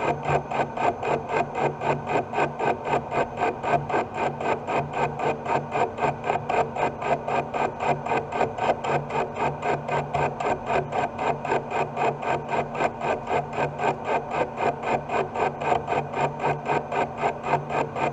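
A metal lathe runs with a steady hum and a fast, regular rhythmic chatter.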